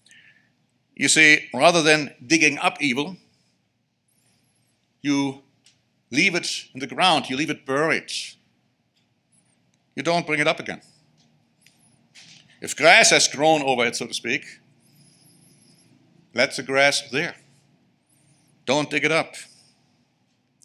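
A middle-aged man speaks calmly into a microphone in phrases with pauses.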